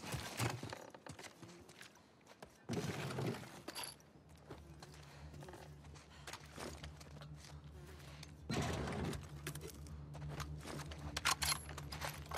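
Footsteps creak on a wooden floor.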